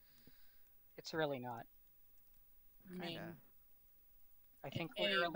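A young man speaks casually into a headset microphone, in short bursts.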